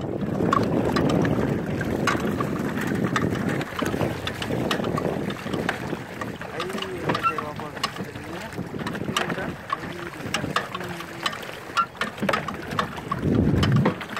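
Water splashes and churns against a small boat.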